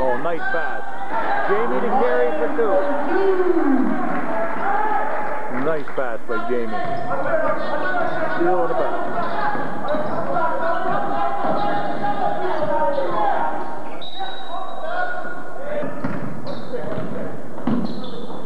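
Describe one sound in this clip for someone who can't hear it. Several men and women talk and shout nearby in a large echoing hall.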